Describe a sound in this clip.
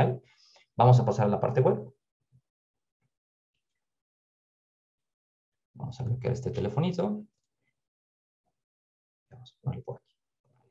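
A man speaks calmly into a close microphone, pausing between phrases.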